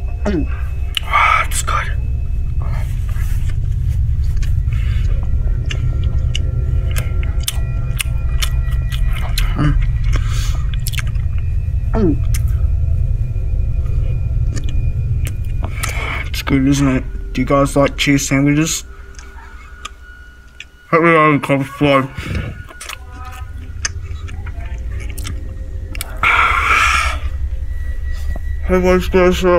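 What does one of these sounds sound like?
A young person chews food noisily, close by.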